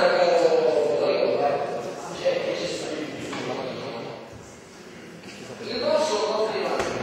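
An elderly man speaks forcefully in a large echoing hall.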